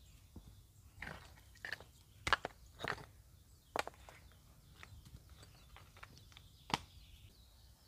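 Stones clack together as they are moved by hand.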